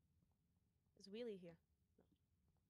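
A young woman lets out a short, rising and falling exclamation close to a microphone.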